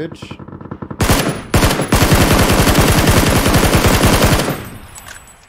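A rifle fires rapid bursts of shots at close range.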